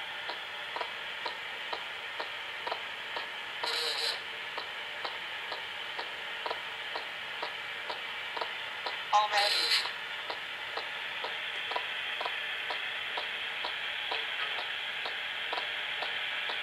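Music with a steady beat plays through a phone's small, tinny speaker.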